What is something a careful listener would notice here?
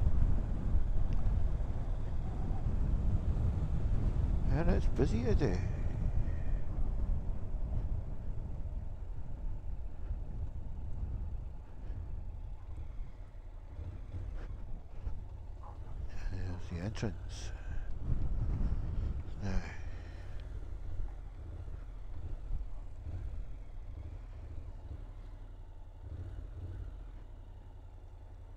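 A motorcycle engine rumbles steadily as it rides along.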